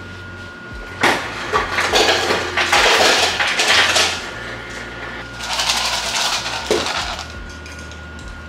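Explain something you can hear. Ice cubes clatter from a fridge dispenser into a cup.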